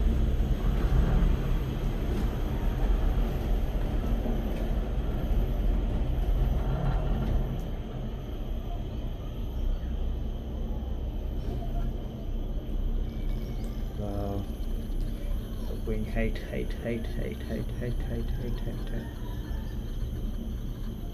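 A cable car cabin rumbles low and steadily as it glides along the cable.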